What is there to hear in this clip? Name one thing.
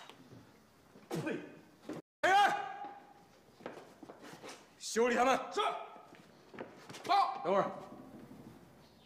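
A man orders loudly.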